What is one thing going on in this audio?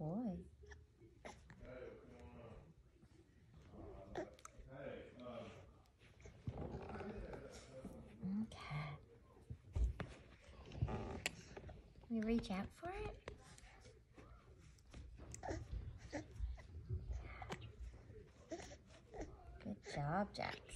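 A woman talks to a baby close by.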